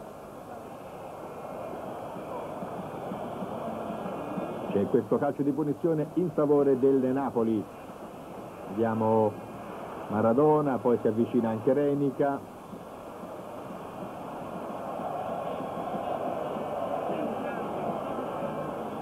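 A large stadium crowd murmurs and roars in the distance.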